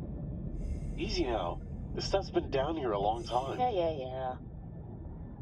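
A young woman speaks calmly through a diving mask, muffled.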